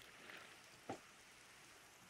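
A fishing line is cast with a short whoosh and a splash.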